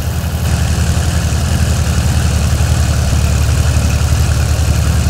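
A tractor engine chugs steadily at low revs.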